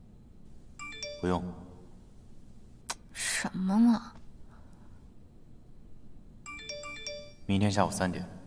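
A phone chimes with incoming messages.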